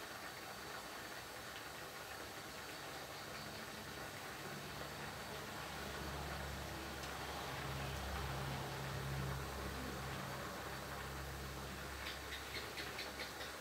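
Rice sizzles and crackles in a hot wok.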